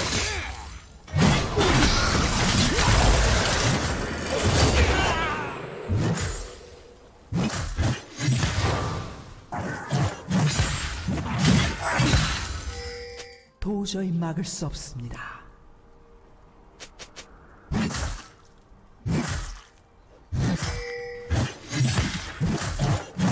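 Video game spell blasts and weapon strikes crash in quick bursts.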